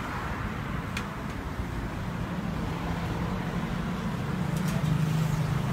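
Metal tongs click against a grill.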